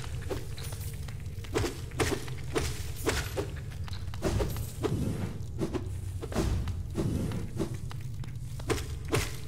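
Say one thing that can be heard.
A small sword slashes and strikes again and again with sharp hits.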